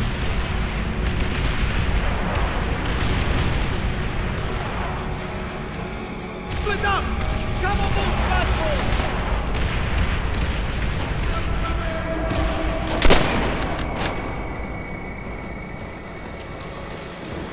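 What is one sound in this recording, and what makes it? Footsteps thud on hard floors and metal grating.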